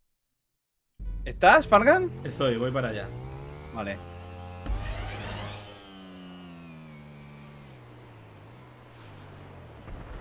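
A motorcycle engine revs and drones, with its pitch rising and falling.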